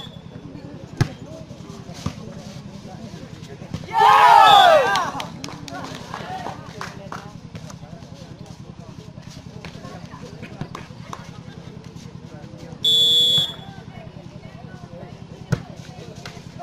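A ball is hit with hands, making sharp slaps.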